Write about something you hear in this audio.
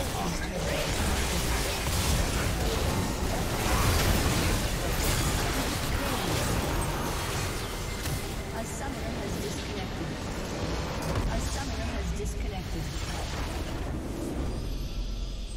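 Video game battle sounds clash and crackle with spell blasts.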